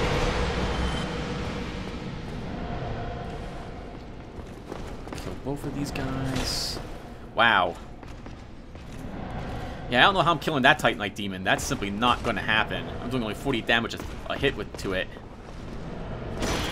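Armored footsteps clank on a stone floor.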